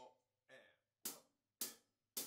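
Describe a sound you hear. A cymbal crashes.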